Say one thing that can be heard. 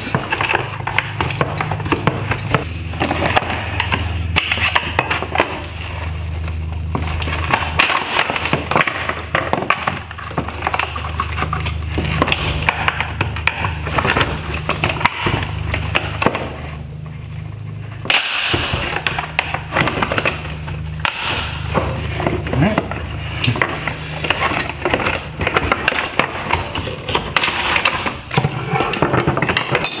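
Small tools click and scrape against hard plastic parts.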